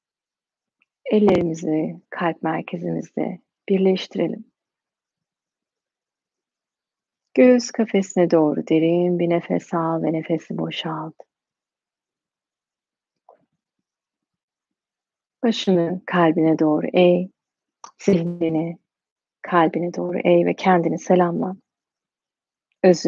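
A young woman speaks calmly and softly, close to a microphone, with pauses.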